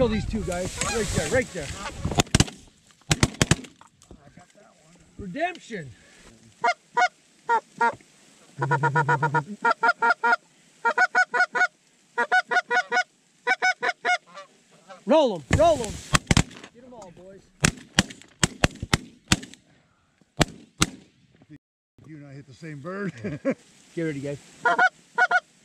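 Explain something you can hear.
Geese honk loudly overhead, calling again and again.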